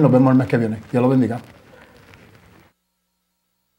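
A man speaks calmly into a microphone up close.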